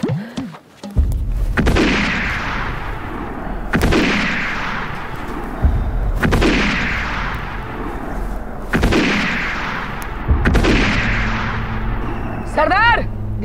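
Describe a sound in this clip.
Rifle shots ring out loudly, one after another, with a long echo.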